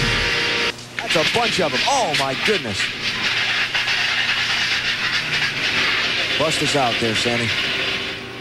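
Tyres screech as cars spin out.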